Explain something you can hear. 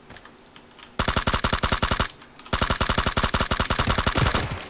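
A rifle fires rapid bursts at close range.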